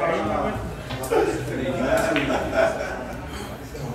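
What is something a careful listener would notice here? Billiard balls click together on a table.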